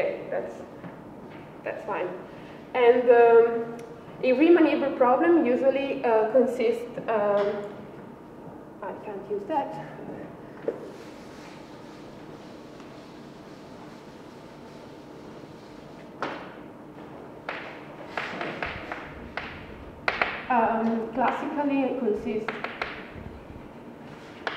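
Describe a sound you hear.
A young woman speaks calmly nearby, explaining.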